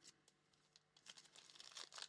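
A foil card pack crinkles as hands handle it.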